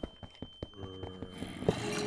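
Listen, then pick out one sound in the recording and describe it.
A pickaxe strikes a block of stone.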